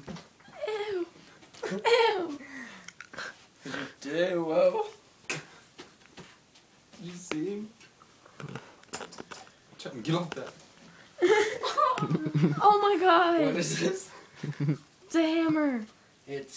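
A young man speaks loudly and animatedly close by.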